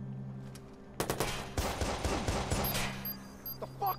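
Rapid gunfire from an automatic rifle rattles in quick bursts.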